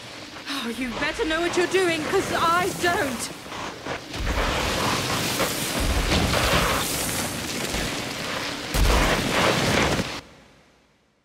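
A loud rushing roar sweeps through an echoing cave.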